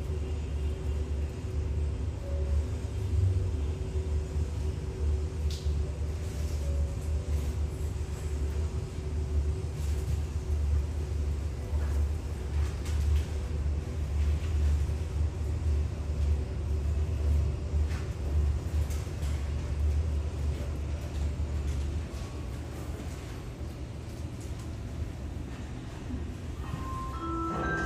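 A parked jet's engine hums steadily in a low drone.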